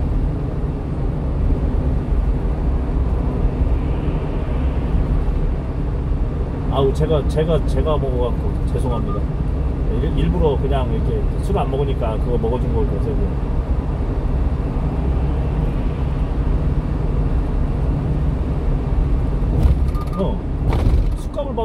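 A car's engine hums and its tyres roar steadily on a highway.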